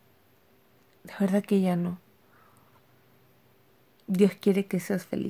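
A middle-aged woman speaks calmly and close by, in short bursts with pauses.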